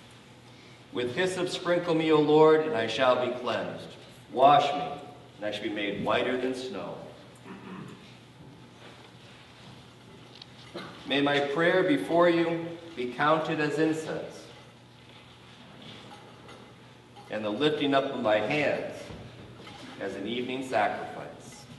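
A man speaks calmly in a slightly echoing room.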